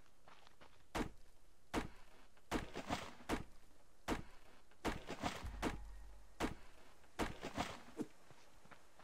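An axe chops into a tree trunk with sharp, repeated knocks.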